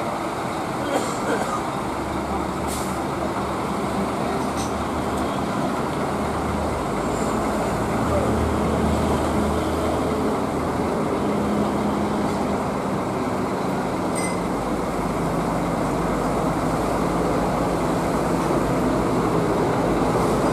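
A Scania diesel coach rumbles as it manoeuvres slowly.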